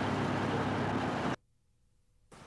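A fire roars.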